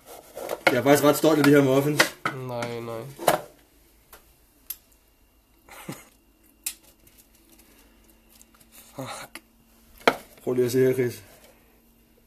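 A metal spoon scrapes and clinks against a glass bowl.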